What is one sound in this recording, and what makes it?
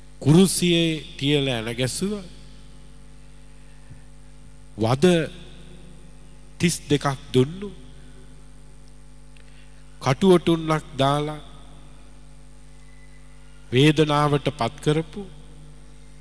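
A middle-aged man preaches with animation through a microphone, in short bursts with pauses, in an echoing hall.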